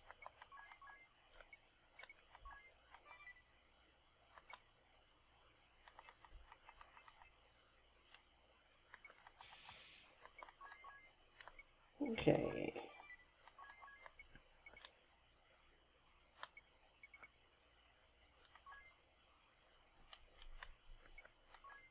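Short electronic menu blips tick again and again.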